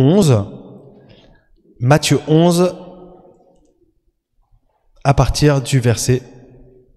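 A man speaks calmly into a microphone in a large echoing hall, pausing between phrases.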